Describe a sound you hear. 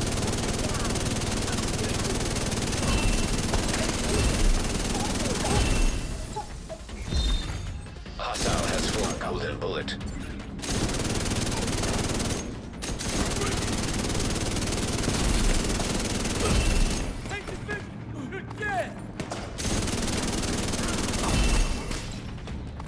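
Automatic rifles fire in rapid, loud bursts.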